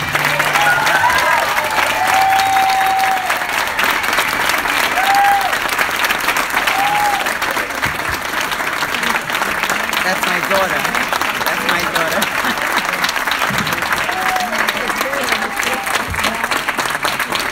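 Audience members cheer and whistle.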